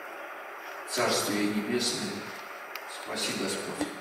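An elderly man speaks solemnly into a microphone in a large echoing hall.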